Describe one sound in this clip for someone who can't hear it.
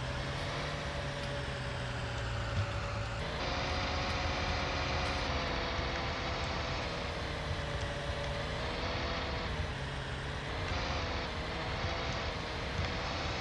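A combine harvester engine drones steadily from inside the cab.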